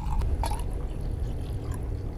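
A liquid pours into a glass.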